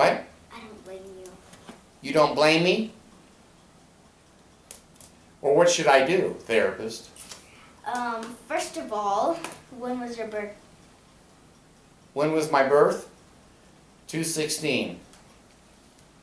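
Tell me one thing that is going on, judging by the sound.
A young girl speaks nearby in short bursts.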